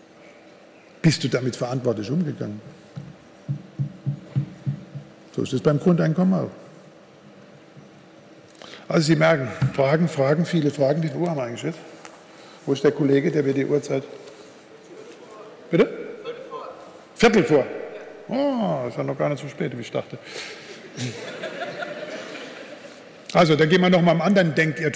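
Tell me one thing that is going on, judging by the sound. An elderly man speaks calmly through a microphone in a large echoing hall, pausing often.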